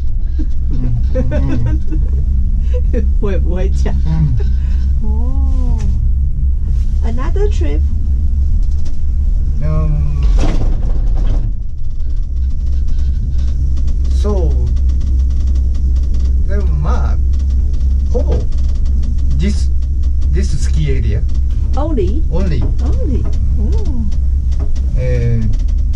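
A steady low rumble of a gondola cabin running on its cable fills the air.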